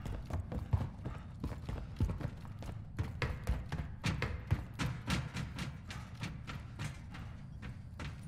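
Footsteps clang quickly on metal stairs and grating.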